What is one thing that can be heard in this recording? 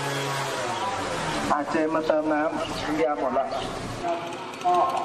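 A man announces loudly through a loudspeaker.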